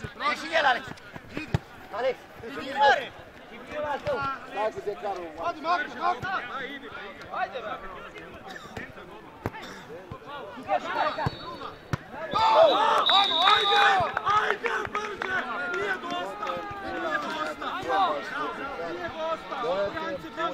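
Young men shout and call to each other outdoors across a playing field.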